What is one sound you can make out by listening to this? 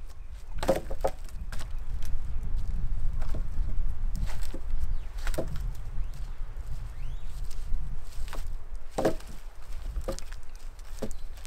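Wooden logs knock and clunk against each other.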